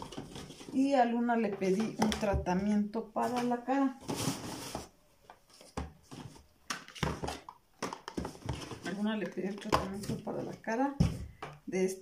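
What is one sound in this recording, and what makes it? Cardboard rustles and thumps as a box is handled.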